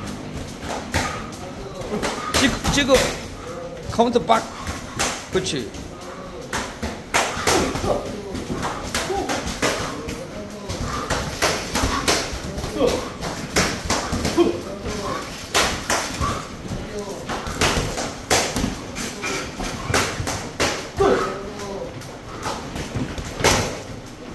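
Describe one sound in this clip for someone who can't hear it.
Boxing gloves thud against each other and against bodies in quick, sharp hits.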